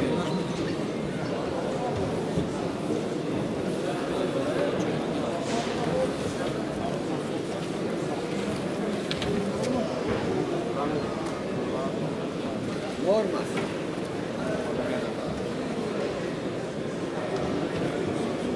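A crowd of men murmurs and chatters in a large echoing hall.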